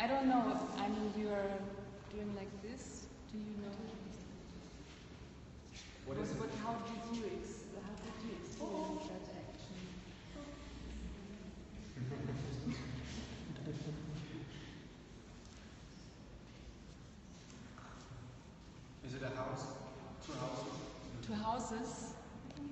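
A woman speaks calmly to a group, close by.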